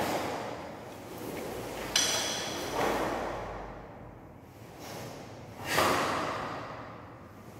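A cloth uniform snaps and swishes with sharp movements.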